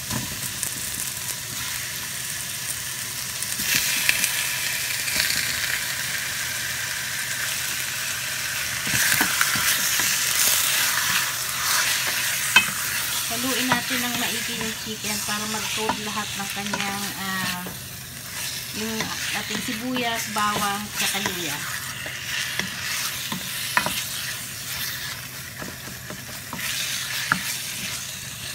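A wooden spoon scrapes and knocks against a metal pan.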